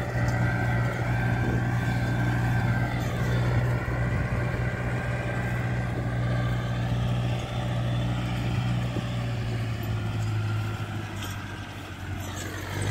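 A tractor engine drones steadily nearby.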